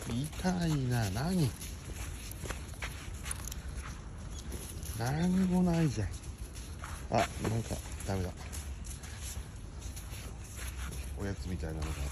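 A small dog's paws patter on gravel.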